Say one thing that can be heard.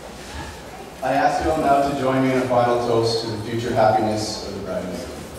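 A young man speaks into a microphone, heard through loudspeakers.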